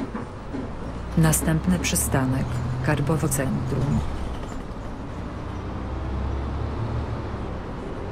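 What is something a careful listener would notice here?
A bus engine revs as the bus pulls away.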